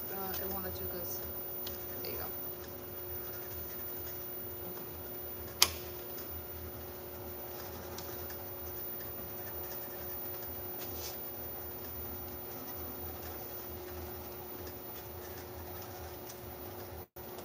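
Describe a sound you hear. Parts of a labelling machine click and clack.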